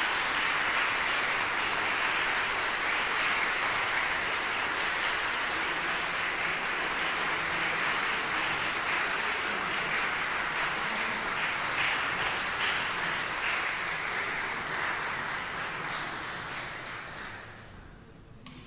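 An audience applauds loudly in a large echoing hall, then the applause fades away.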